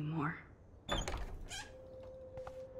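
A door latch clicks and a door swings open.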